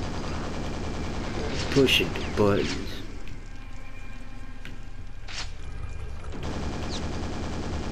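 A shotgun fires loud blasts with a short echo.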